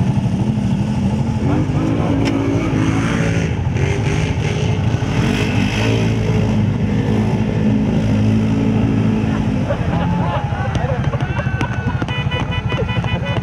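A quad bike engine revs loudly, rising and falling.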